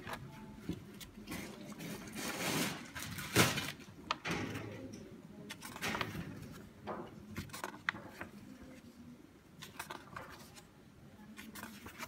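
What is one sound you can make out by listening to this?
Magazine pages rustle and flip as they are turned.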